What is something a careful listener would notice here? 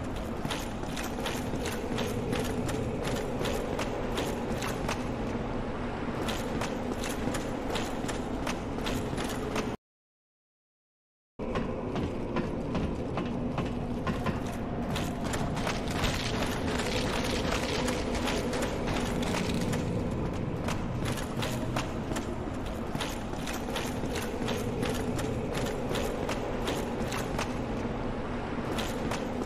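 Armoured footsteps clank quickly on stone.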